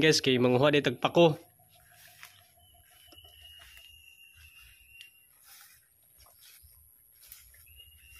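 Footsteps rustle through tall grass and leafy undergrowth.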